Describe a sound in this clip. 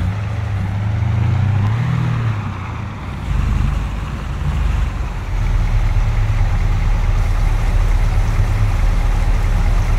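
A truck engine hums low and steady as it drives and then idles.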